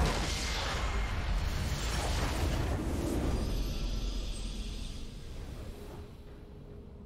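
A huge explosion booms and rumbles, then slowly fades away.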